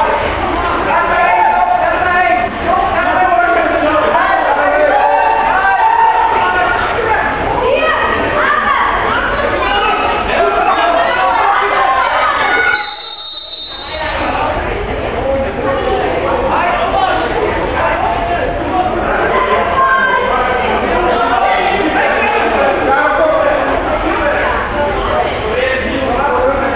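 Players and spectators shout and chatter in an echoing indoor pool hall.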